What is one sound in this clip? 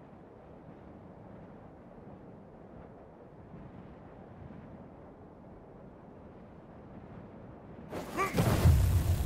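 Wind blows softly and steadily outdoors.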